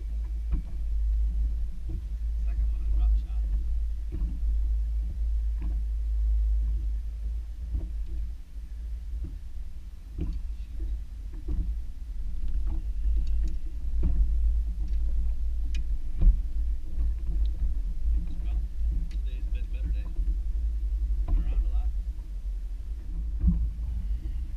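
A fishing lure and hooks click and rattle as a man handles a fish.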